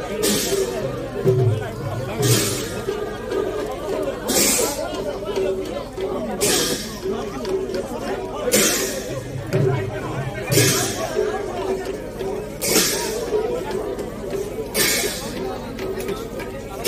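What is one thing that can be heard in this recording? A group of men chant together in a steady rhythm.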